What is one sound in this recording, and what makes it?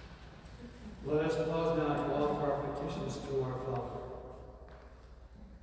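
An elderly man speaks calmly and clearly.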